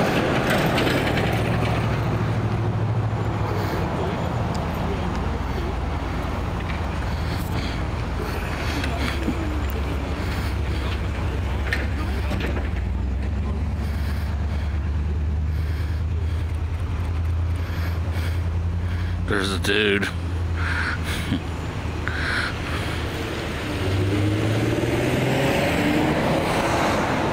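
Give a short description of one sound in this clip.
An engine idles steadily nearby.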